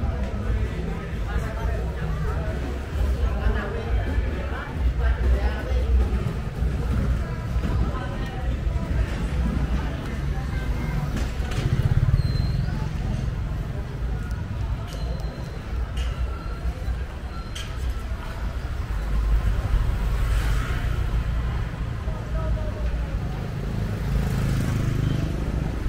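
Footsteps walk along a street.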